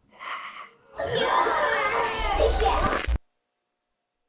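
Loud television static hisses and crackles.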